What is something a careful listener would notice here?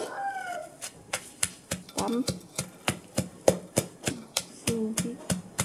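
A wooden pestle pounds rhythmically in a clay mortar.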